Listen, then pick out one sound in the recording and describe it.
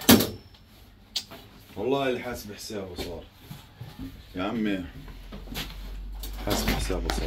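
A glass panel knocks and rattles against a metal frame as it is handled.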